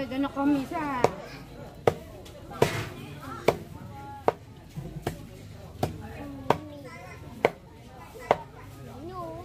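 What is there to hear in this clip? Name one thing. A knife chops down hard on a board in steady blows.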